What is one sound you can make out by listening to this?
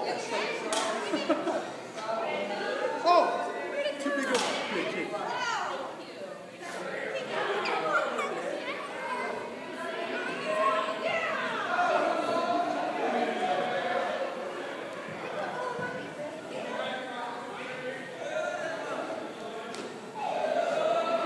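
Small children shout and squeal in a large echoing hall.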